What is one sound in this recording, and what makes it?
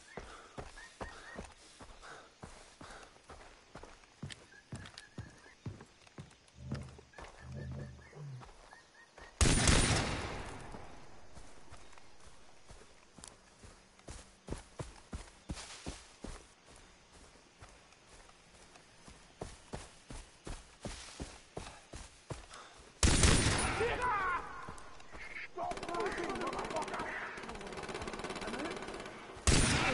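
Footsteps rustle through tall grass at a steady walking pace.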